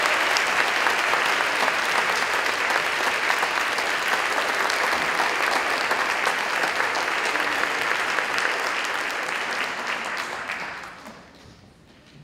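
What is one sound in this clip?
An audience applauds loudly in a large hall, then the applause dies away.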